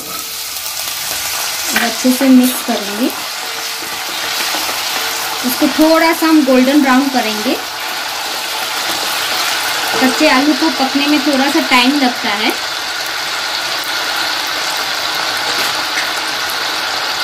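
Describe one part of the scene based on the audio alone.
Potatoes sizzle and crackle in hot oil.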